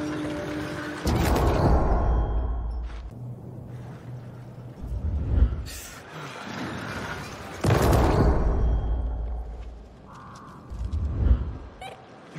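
A body crashes down through a window with a heavy thud.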